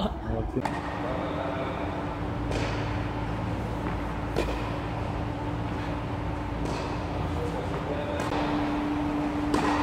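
Tennis balls are struck with rackets at a steady pace in a large echoing hall.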